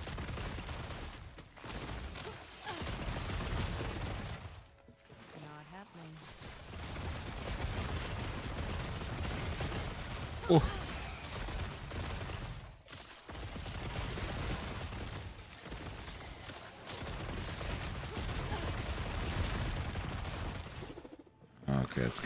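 Magic spells crackle and burst in a game.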